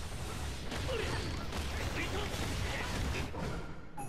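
Energy blasts hit with sharp bangs.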